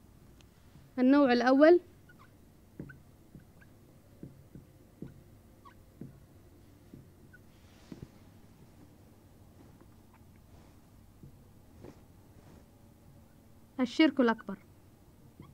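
A marker squeaks loudly on a whiteboard in short bursts.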